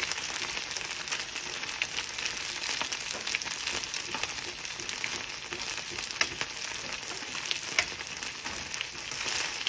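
Meat sizzles steadily in a hot pan.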